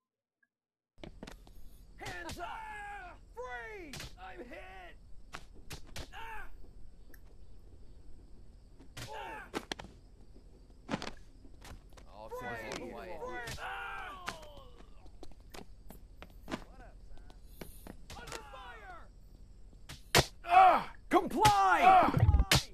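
A rifle fires sharp single shots.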